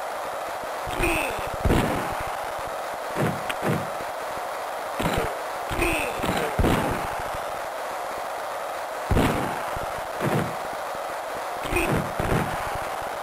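Hockey sticks smack a puck with sharp thuds.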